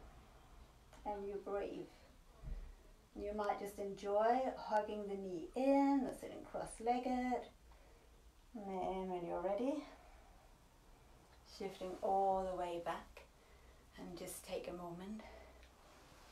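A woman speaks calmly and close by, with pauses.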